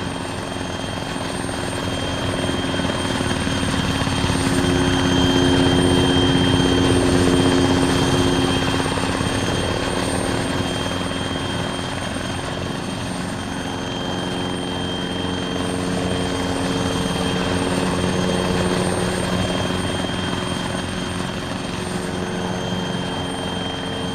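A helicopter's rotor thumps and its engine whines steadily, close by.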